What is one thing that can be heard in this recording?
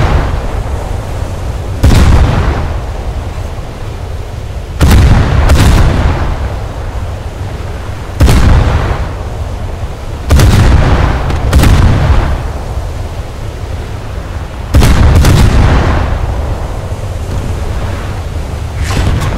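Waves wash steadily against a ship's hull.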